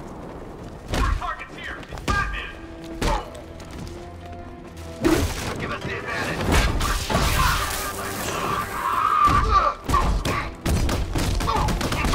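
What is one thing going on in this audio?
Punches and kicks land with heavy thuds in a fight.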